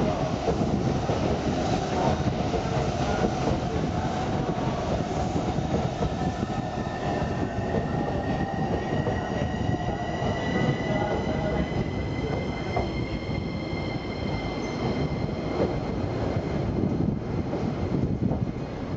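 A train rumbles past close by, wheels clattering on the rails.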